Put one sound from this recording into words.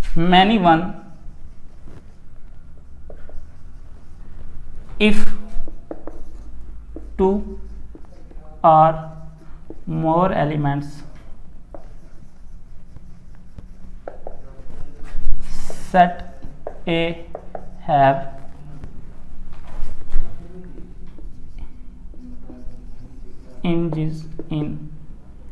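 A young man speaks calmly, explaining, close by.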